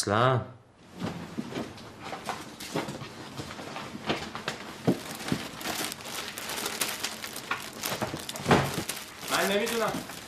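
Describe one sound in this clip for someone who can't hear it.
Paper sheets rustle and crinkle.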